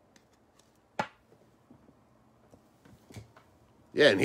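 Cards shuffle and flick softly as they are handled close by.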